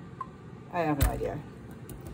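A plastic bottle thumps down onto a sink.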